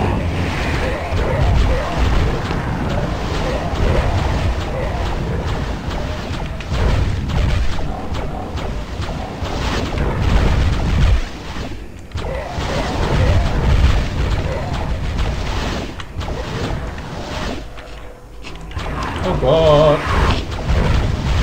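A magic weapon in a video game fires crackling blasts.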